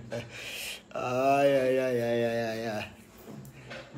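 A young man sings close to a phone microphone.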